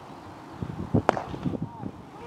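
A cricket bat cracks sharply against a ball outdoors.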